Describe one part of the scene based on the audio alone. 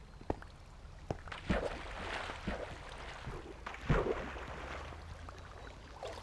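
Water splashes softly.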